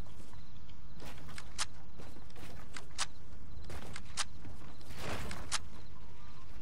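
Building pieces snap into place with sharp clicks and thuds.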